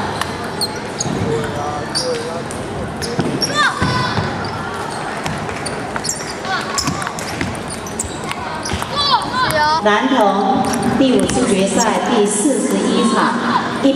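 A crowd of children chatters and calls out in a large echoing hall.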